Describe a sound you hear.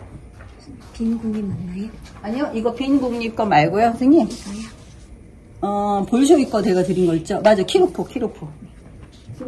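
A woman speaks close by with animation, in a room with some echo.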